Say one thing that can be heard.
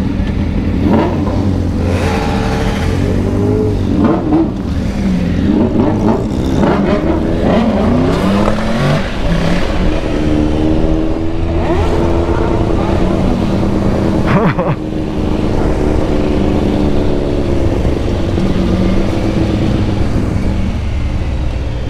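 A motorcycle engine revs up and down as the bike pulls away and speeds along.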